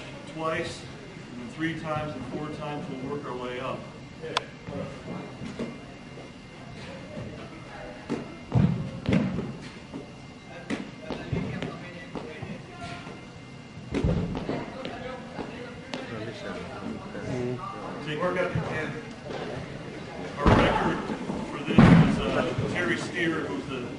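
A man talks calmly in a large echoing hall.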